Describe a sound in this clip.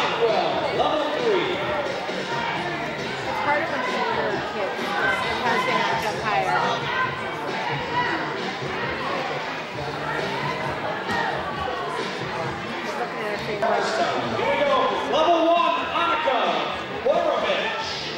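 Young girls chatter and call out nearby in an echoing hall.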